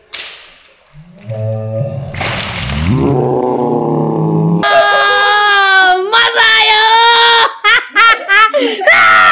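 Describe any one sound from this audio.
A young boy laughs and squeals loudly close by.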